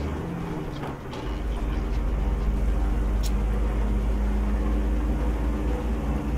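Windshield wipers sweep back and forth.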